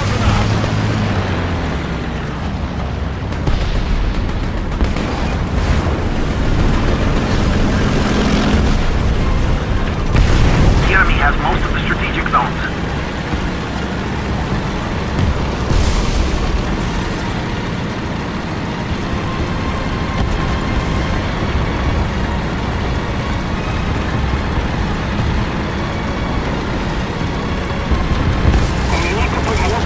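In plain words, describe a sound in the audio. Tank tracks clank and rattle over the ground.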